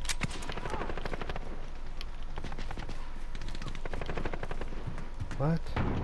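A rifle fires in quick bursts.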